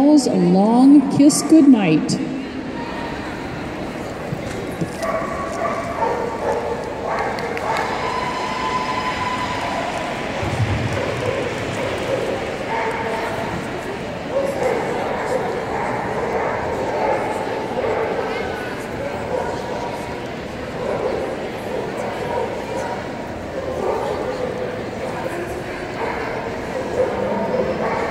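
A woman calls out commands to a dog with animation.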